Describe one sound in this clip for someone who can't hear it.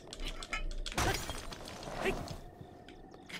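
Rocks crack and clatter as they break apart.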